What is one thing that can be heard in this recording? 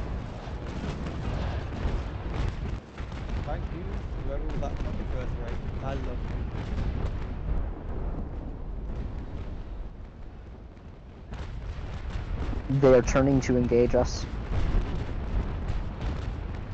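Cannons boom in heavy, rumbling blasts.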